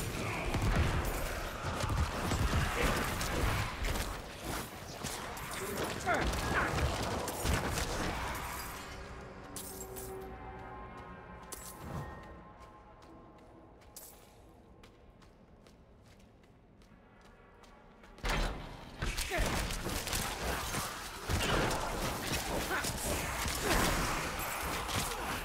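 Weapons clash and hit in a video game fight.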